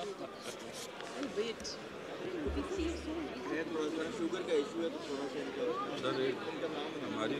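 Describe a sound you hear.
Many men and women chatter in the background of a large echoing hall.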